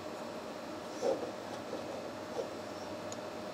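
Metal parts clink softly as hands set them on a vise.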